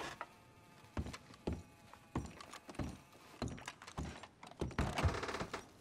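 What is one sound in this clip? Boots thud on a wooden floor.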